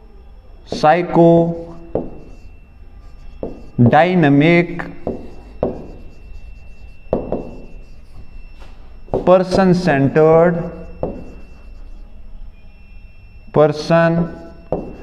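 A young man speaks slowly in short phrases, close by.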